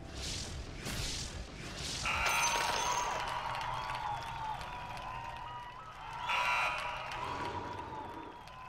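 Fantasy battle sound effects clash and chime in quick bursts.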